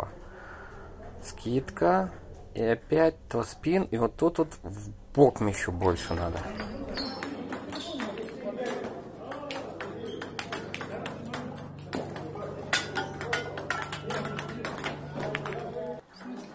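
A ping pong ball clicks back and forth off paddles and a table.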